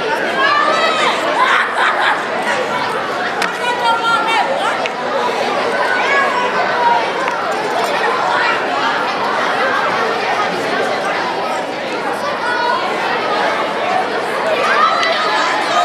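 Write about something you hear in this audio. A large crowd of children and adults chatters, echoing in a big hall.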